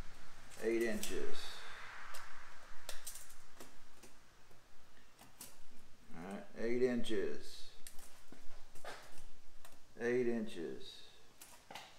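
A tape measure rattles and clicks.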